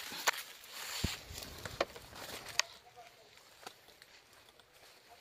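Leaves rustle and twigs snap underfoot as someone walks through dense undergrowth.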